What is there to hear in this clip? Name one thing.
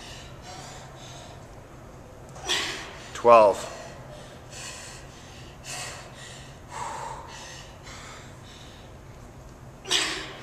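A young woman talks calmly nearby in a large echoing hall.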